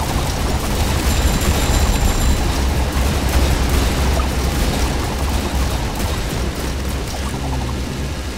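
Guns and lasers fire rapidly in a noisy battle.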